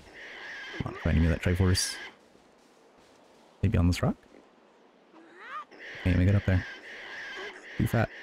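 A cartoon pig squeals and grunts in short bursts.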